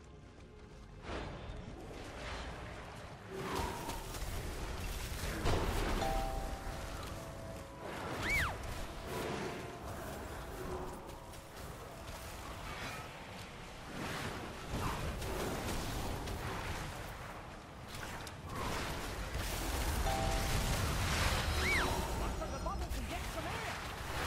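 Magic spells crackle and burst in a fast fight.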